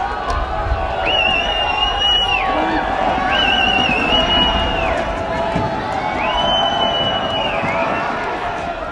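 A referee's whistle blows several long blasts.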